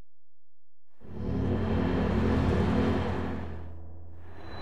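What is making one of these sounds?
A magical shimmering hum swells and fades.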